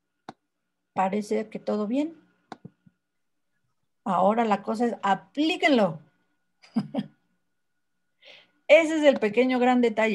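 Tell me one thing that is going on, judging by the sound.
A woman speaks through an online call, in short phrases with pauses.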